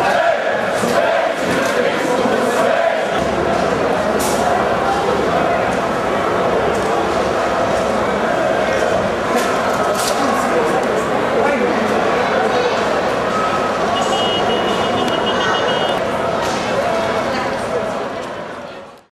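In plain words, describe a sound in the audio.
A large crowd murmurs and chatters in a wide echoing space.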